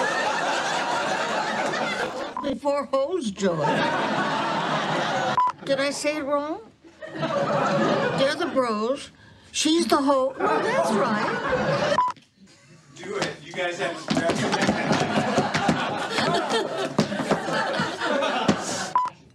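Women laugh loudly.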